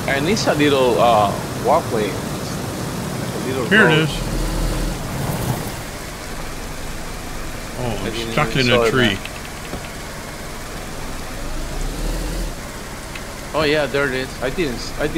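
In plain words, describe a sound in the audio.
A car engine hums as the car drives along a road and stops.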